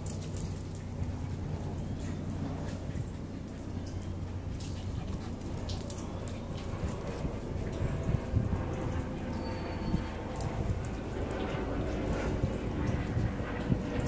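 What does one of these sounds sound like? A dog's claws click and scrabble on a tiled floor.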